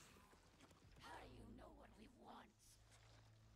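A creature speaks in a hissing, rasping voice.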